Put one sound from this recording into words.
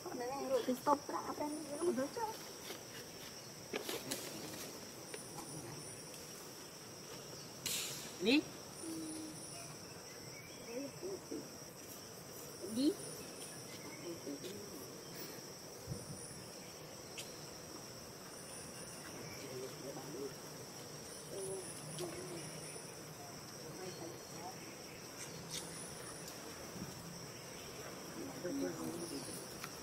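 A baby monkey squeaks and chirps in short high calls.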